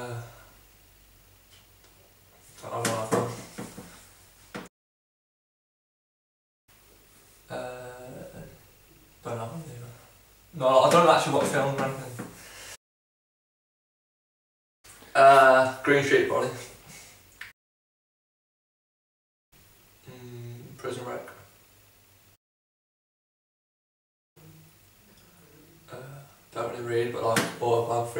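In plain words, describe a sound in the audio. A young man speaks calmly and close by, in short answers broken by silences.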